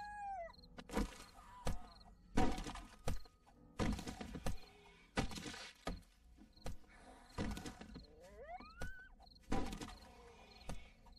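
Heavy blows thud repeatedly against wood.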